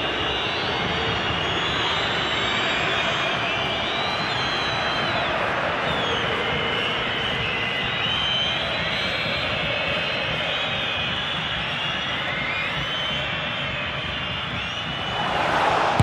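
A large stadium crowd murmurs and whistles steadily.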